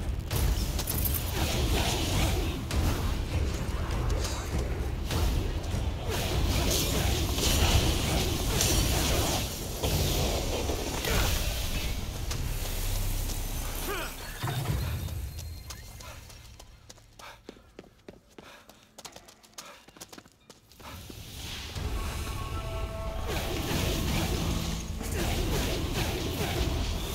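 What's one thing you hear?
Magic blasts crackle and burst in rapid bursts.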